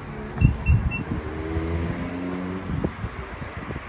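An electric motor whirs as a car's tailgate slowly closes.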